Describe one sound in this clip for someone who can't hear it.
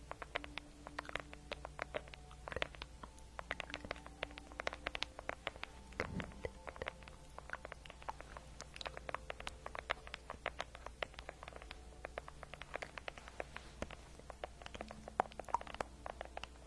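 Fingernails tap and click rapidly on a hard plastic object close to a microphone.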